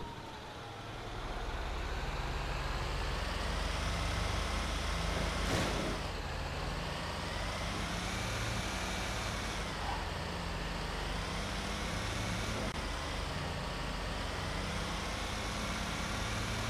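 A truck engine drones steadily, rising and falling in pitch as it drives.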